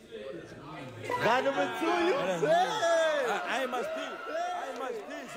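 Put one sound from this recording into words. A crowd of young people shouts and laughs loudly.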